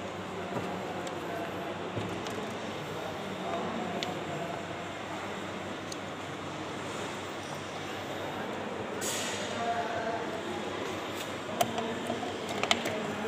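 Metal parts clink and tap as they are handled.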